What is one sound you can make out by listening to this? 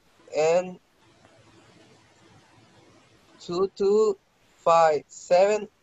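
A young woman speaks clearly over an online call, in short phrases with pauses.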